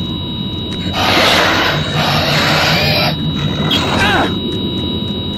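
A monster roars and snarls up close.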